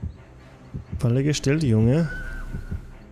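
A young man speaks loudly into a close microphone.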